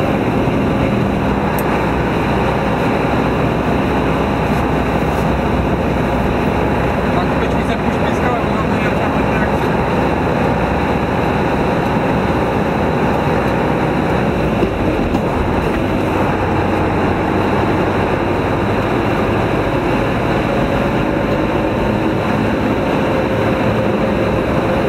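A heavy vehicle's engine rumbles steadily while driving.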